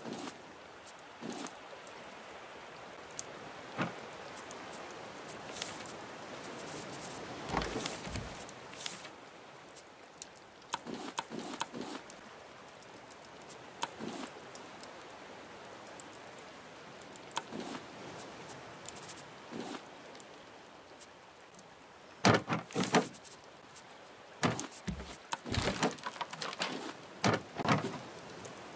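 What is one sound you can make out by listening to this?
Soft clicks tick now and then.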